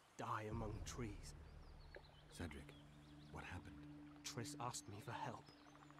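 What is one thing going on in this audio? A man's deep voice asks a question.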